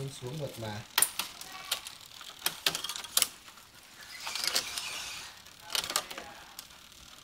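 A mountain bike's gear shifter clicks under a hand.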